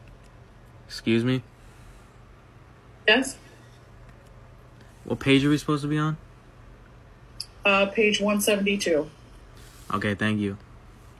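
A middle-aged woman speaks in short bursts over an online call.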